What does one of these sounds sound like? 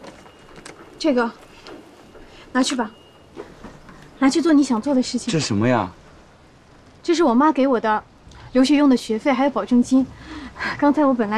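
A young woman speaks firmly close by.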